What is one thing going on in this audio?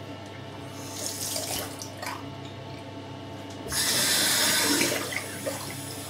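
Water splashes as a man rinses his face.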